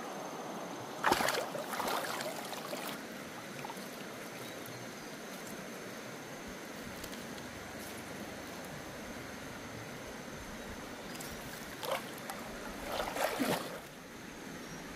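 Water splashes as a person wades and sweeps a net through it.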